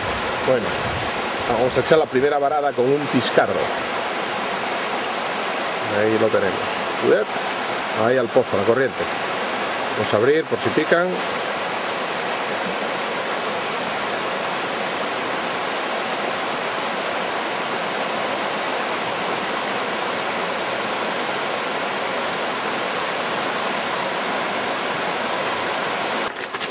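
A shallow river rushes steadily over stones.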